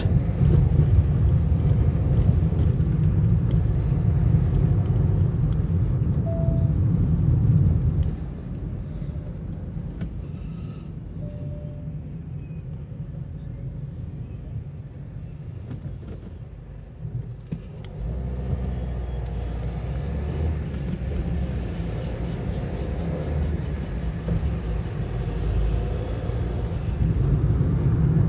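A car engine hums steadily from inside the car, with road rumble that drops while the car waits at a red light and rises again as it drives on.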